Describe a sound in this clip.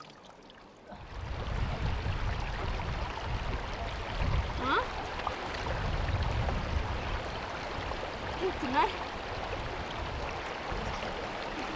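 A shallow stream babbles over stones.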